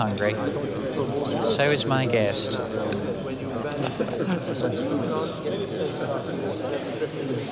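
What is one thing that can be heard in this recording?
Serving cutlery clinks against a platter.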